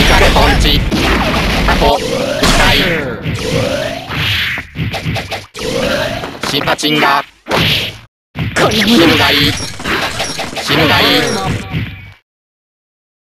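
Punches, kicks and sword slashes strike in quick bursts of fast electronic fight sounds.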